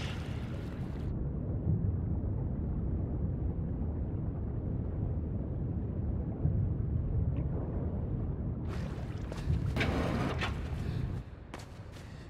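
Water rumbles and churns deep underwater.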